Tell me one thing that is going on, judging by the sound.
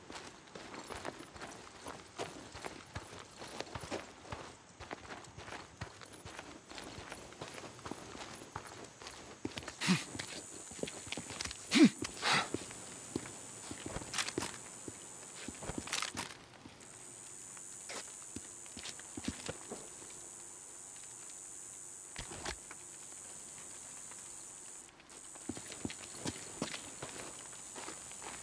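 Footsteps crunch over dry ground and gravel.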